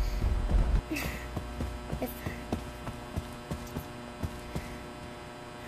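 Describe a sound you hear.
Footsteps tap steadily across a floor.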